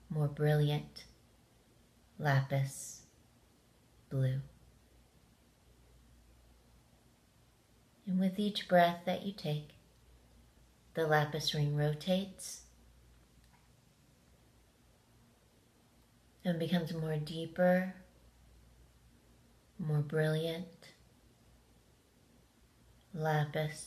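A middle-aged woman speaks calmly and close up, in short phrases with pauses.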